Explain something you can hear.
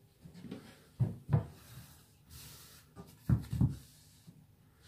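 A wooden panel knocks against the floor.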